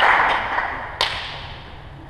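A ball thumps hard on a floor.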